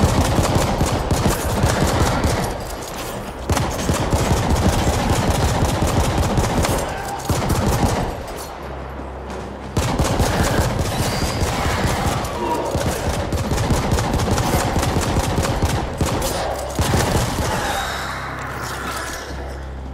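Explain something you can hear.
Rapid gunfire rattles over and over.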